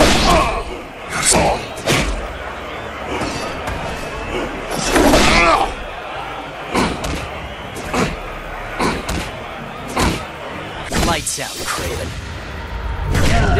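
Punches land with sharp, heavy thuds.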